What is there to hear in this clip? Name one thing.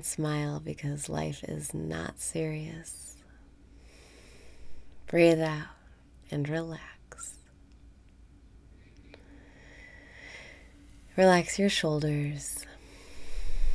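A woman speaks calmly and close to the microphone.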